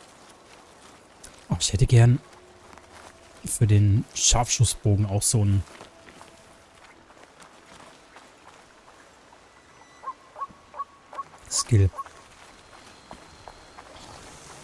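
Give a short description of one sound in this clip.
Footsteps rustle softly through leafy undergrowth.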